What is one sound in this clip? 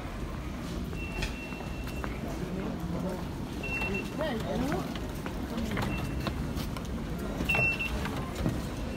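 Ticket barriers beep with short, high tones.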